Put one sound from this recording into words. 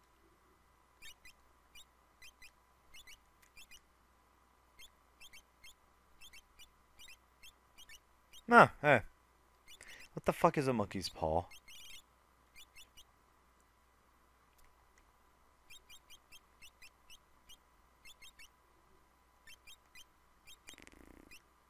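Short electronic menu blips tick in quick runs.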